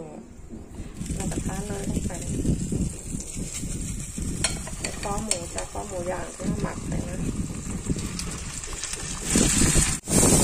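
Meat sizzles and hisses in a hot frying pan.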